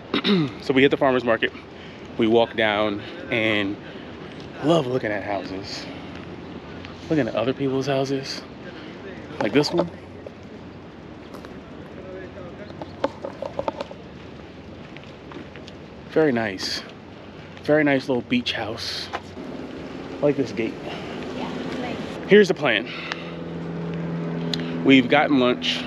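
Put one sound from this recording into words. A man talks calmly and casually close by.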